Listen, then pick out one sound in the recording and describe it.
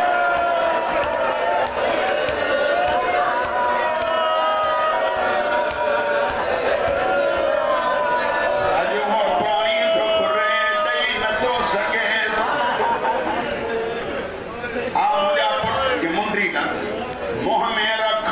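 A crowd of men beat their chests in rhythm.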